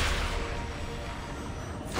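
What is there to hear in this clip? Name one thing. Electricity crackles and sizzles.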